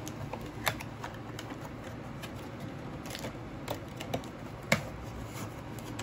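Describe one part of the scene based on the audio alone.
Foil packs crinkle as they are handled.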